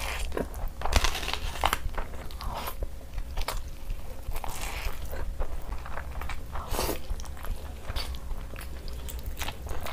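A young woman chews food noisily and wetly, close to a microphone.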